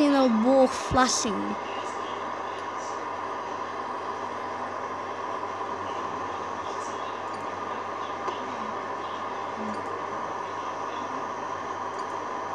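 A steady electronic hum plays from a small speaker.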